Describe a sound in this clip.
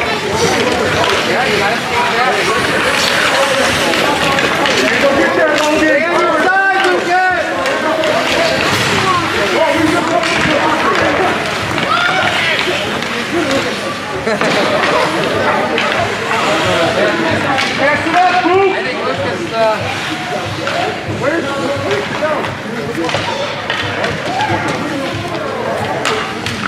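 Ice skates scrape and carve across an echoing rink.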